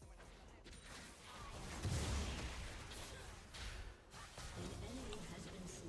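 Game sound effects of magic attacks and impacts crackle and burst.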